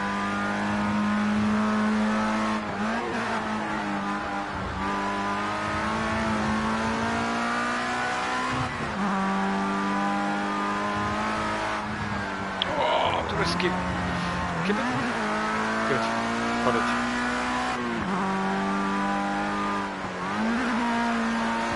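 A racing car engine roars at high revs, dropping briefly with each gear shift.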